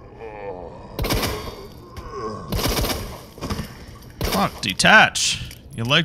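Gunshots bang loudly several times.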